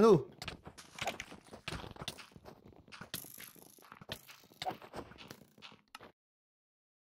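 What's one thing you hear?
Sword blows land with short thuds in a video game.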